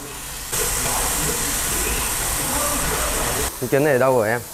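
Food sizzles and hisses in a frying pan.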